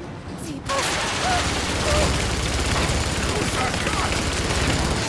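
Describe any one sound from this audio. Tyres grind over rough rocky ground.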